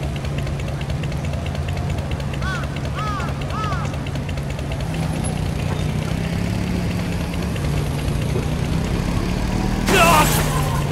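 A small motorbike engine hums steadily.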